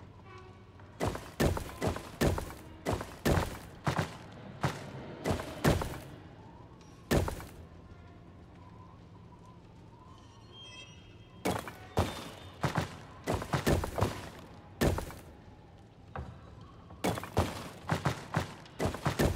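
Stone tiles slide and clunk into place with sharp knocks.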